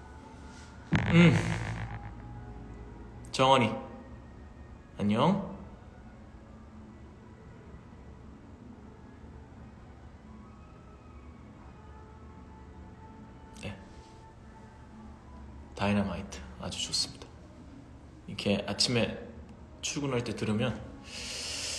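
A man speaks calmly and close by, in short bursts with pauses.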